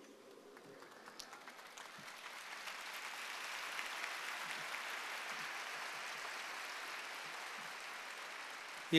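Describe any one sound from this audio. A large crowd applauds and cheers outdoors.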